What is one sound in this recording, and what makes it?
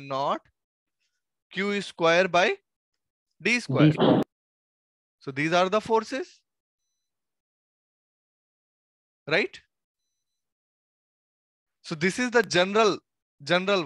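A young man speaks calmly into a headset microphone, pausing between phrases.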